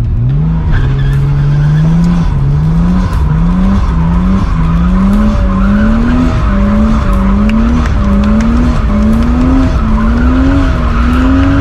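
A car engine revs hard, rising and dropping again and again.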